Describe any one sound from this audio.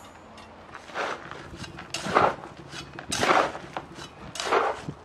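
A shovel scrapes and scoops dry gritty powder in a plastic tub.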